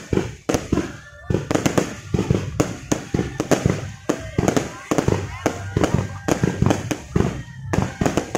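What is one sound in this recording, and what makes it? Fireworks bang and crackle loudly overhead, one burst after another.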